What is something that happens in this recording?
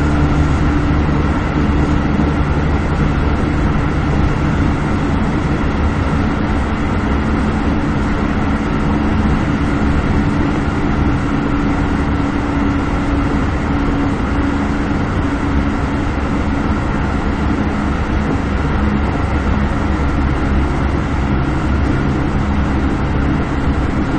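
A train's motor hums with a steady drone.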